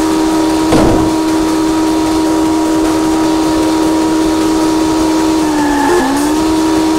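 A car engine hums steadily as the car drives, dipping in pitch briefly near the end.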